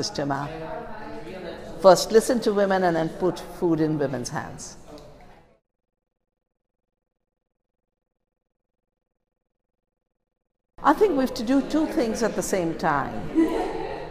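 An older woman speaks calmly and close to a microphone.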